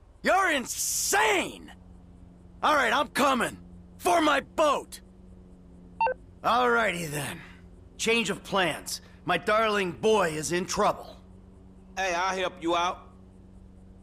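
A man talks with animation on a phone call.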